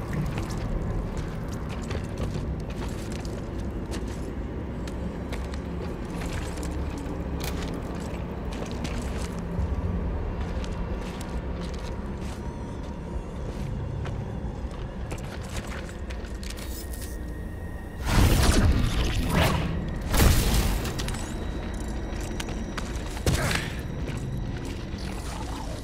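Heavy boots tread on rocky ground.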